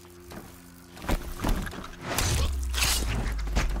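A heavy blow strikes a machine with a metallic crash.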